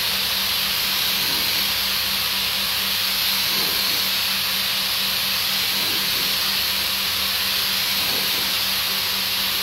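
A machine hums steadily in the background.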